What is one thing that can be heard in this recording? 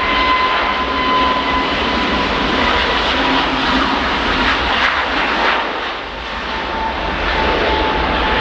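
A jet airliner's engines roar loudly as it races down a runway for takeoff.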